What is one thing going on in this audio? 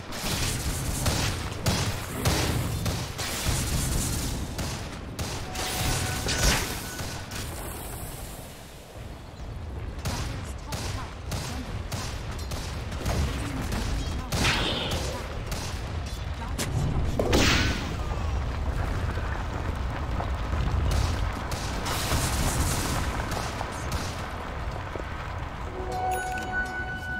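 Game spell effects and attacks clash and crackle in a fight.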